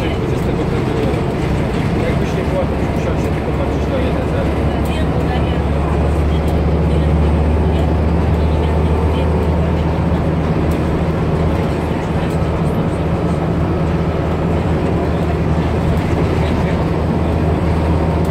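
Loose fittings on a moving bus rattle and click.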